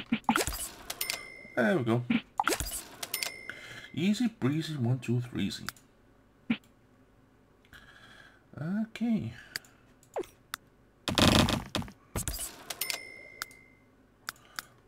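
Soft chimes and clicks sound as building pieces are placed.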